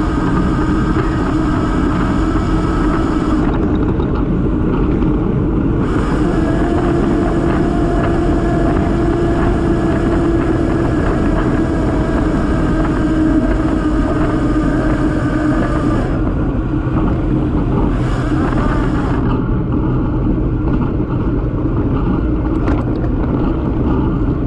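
Bicycle tyres hum on a smooth road.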